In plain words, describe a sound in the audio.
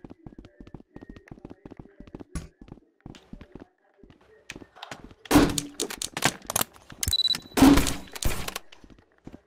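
Footsteps tap quickly across a hard floor.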